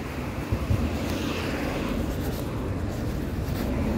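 Traffic hums along a nearby street.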